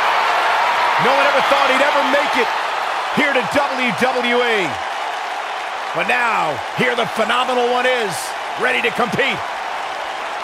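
A large crowd chants loudly in unison.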